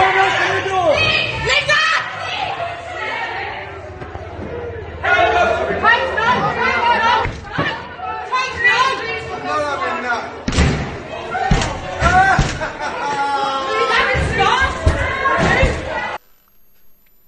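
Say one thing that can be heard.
A crowd of men shout and yell loudly in a chaotic scuffle.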